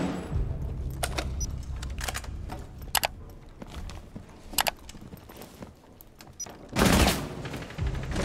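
Gunshots crack sharply, a few at a time, with short pauses between them.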